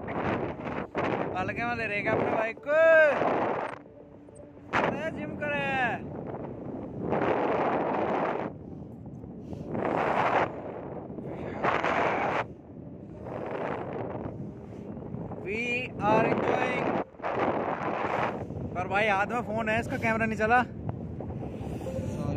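Wind rushes loudly past a microphone.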